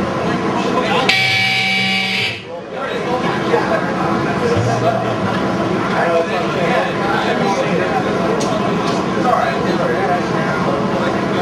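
A man growls and screams into a microphone.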